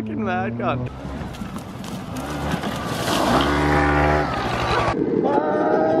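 A scooter engine revs hard.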